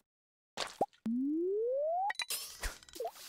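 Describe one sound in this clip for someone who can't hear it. A fishing line casts with a rising whoosh in a video game.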